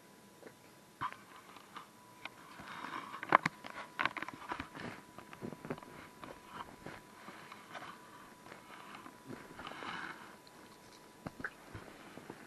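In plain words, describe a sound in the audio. Cloth rustles and bumps right against the microphone.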